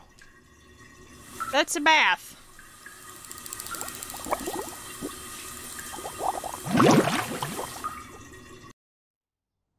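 Water from a shower pours steadily.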